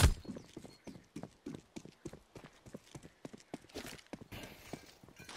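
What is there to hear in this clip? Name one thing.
Quick footsteps run over hard ground.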